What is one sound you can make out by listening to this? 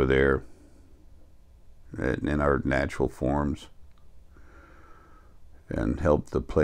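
An older man speaks calmly and close into a microphone, in short bursts with pauses.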